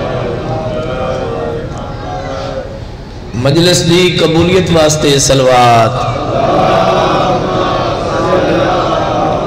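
A man speaks with passion into a microphone, heard through loudspeakers.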